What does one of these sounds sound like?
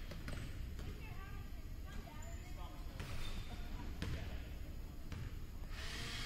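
A basketball bounces on a wooden floor with an echo.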